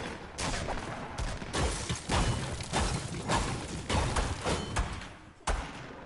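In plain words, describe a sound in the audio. A pickaxe strikes wood again and again.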